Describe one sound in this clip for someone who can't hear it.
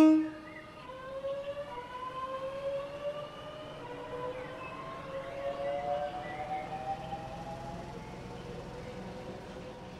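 An electric train's motor whines, rising in pitch as it pulls away.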